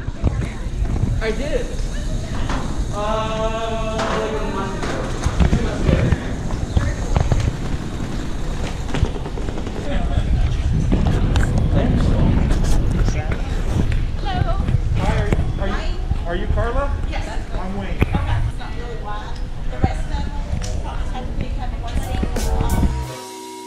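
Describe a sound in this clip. Adults talk casually nearby.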